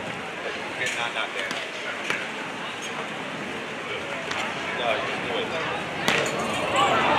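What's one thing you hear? A volleyball is struck with sharp slaps during a rally.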